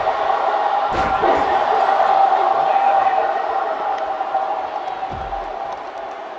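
A body slams down hard onto a wrestling mat.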